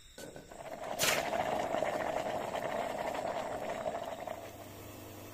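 Hot metal hisses and sizzles as it is dunked in water.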